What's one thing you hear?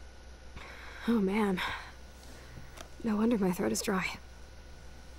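Another young woman speaks weakly and hoarsely.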